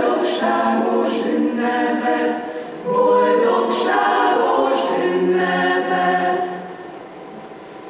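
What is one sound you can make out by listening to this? A choir sings together in a large hall.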